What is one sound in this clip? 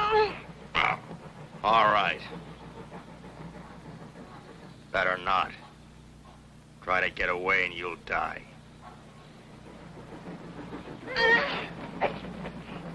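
A young boy speaks.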